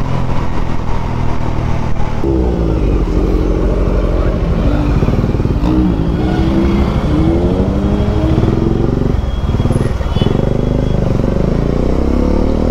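A motorcycle engine hums steadily up close, its pitch rising and falling with the throttle.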